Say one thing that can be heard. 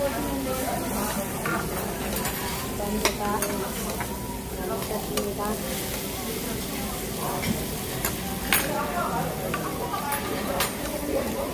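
Metal tongs click against a grill plate.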